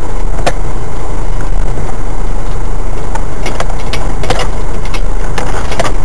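A vehicle's body knocks and rattles over bumps in a dirt track.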